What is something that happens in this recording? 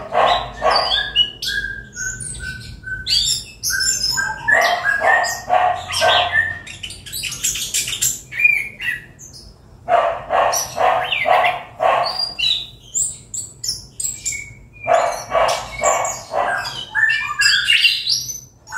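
A bird sings loudly close by, with chirps, whistles and rapid chattering phrases.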